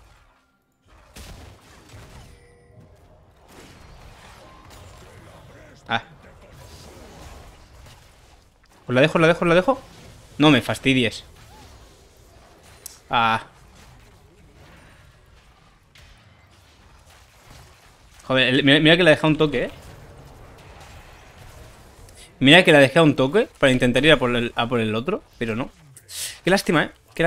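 Game sound effects clash and whoosh during a fight.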